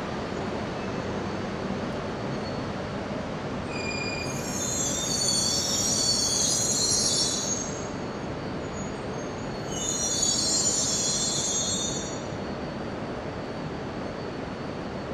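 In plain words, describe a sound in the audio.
A high-speed train rolls slowly past with a low, steady rumble.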